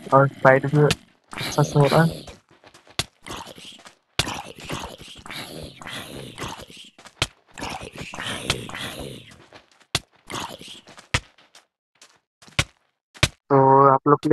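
Blows land with short, sharp thuds again and again.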